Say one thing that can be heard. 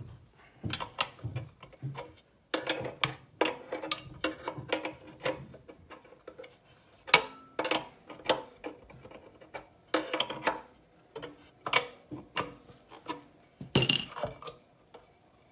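A metal wrench clinks against metal fittings.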